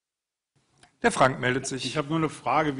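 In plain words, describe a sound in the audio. A man speaks loudly through a nearby microphone.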